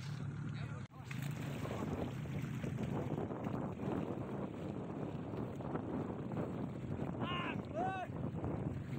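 Swimmers splash and paddle through the water close by.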